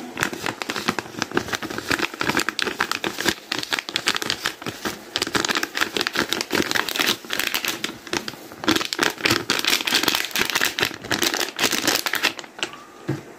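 Seasoning patters from a paper packet onto raw potato sticks.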